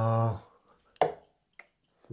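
A dart thuds into a dartboard.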